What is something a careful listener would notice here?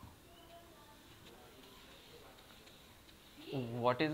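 A board eraser rubs across a whiteboard.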